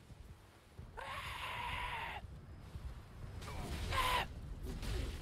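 A fiery spell whooshes and roars in bursts.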